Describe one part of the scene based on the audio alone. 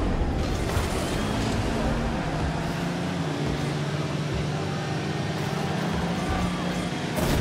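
Toy-like car engines hum and whine steadily.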